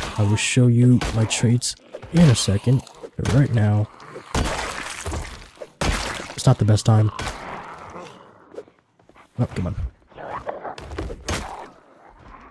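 Heavy blows thud repeatedly against bodies.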